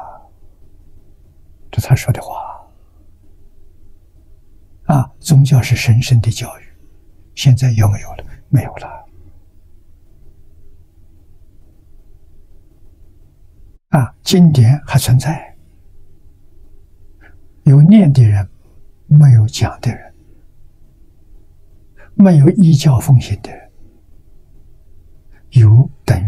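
An elderly man speaks calmly and slowly into a microphone, with long pauses.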